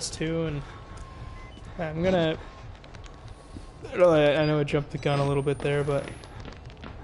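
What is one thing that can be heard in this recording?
A young man speaks close to a microphone in short, tense bursts.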